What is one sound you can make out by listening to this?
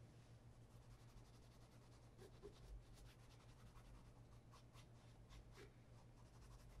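A cloth rubs and scratches against a leather shoe sole.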